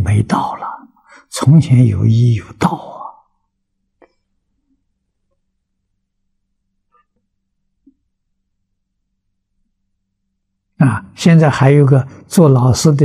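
An elderly man speaks calmly and closely into a microphone, with long pauses.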